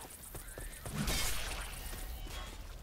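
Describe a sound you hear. A blade slashes into flesh with a wet thud.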